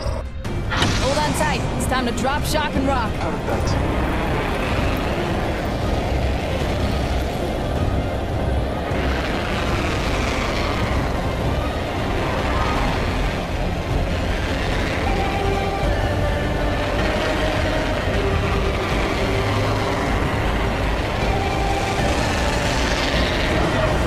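Wind rushes loudly past while gliding through the air.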